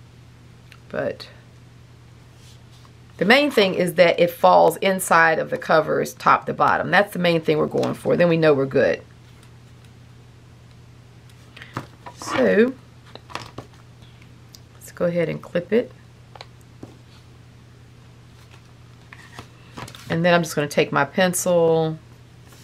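Paper rustles softly as a small booklet is handled.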